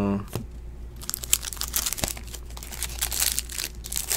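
A plastic wrapper crinkles as a pack is torn open.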